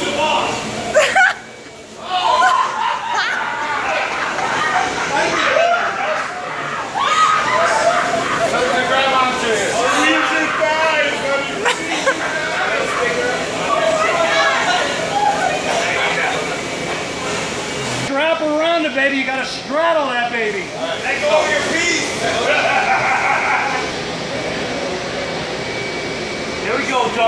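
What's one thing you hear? A mechanical bull whirs as it bucks and spins.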